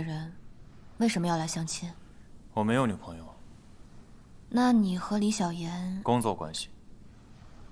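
A young man answers calmly in a low voice.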